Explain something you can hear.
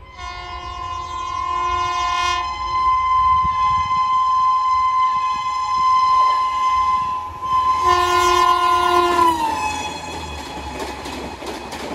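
A train rumbles and clatters past on the rails.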